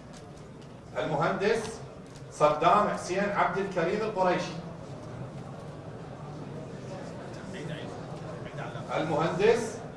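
A man reads out clearly through a microphone.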